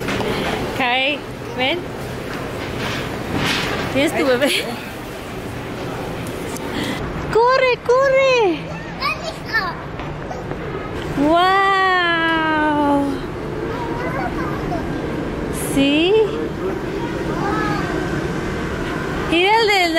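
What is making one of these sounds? A toddler girl squeals and babbles in high-pitched bursts.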